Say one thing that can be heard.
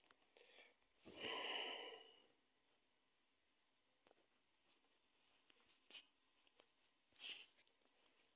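A man speaks briefly and quietly, close by.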